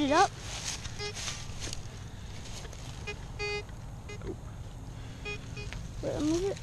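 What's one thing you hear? A metal detector beeps in short tones as it sweeps over the ground.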